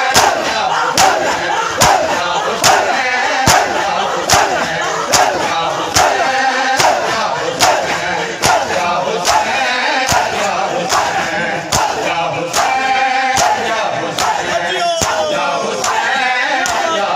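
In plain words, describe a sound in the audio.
A large crowd of men beat their chests in a steady rhythm.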